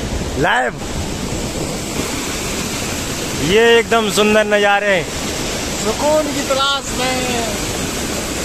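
A waterfall rushes and splashes onto rocks.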